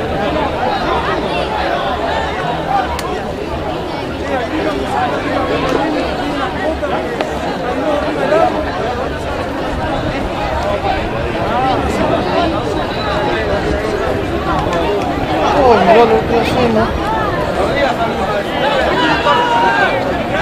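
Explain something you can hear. Young men shout and call to each other across a field outdoors.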